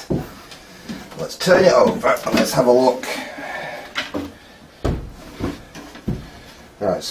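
A hand pats and taps on a hollow wooden box.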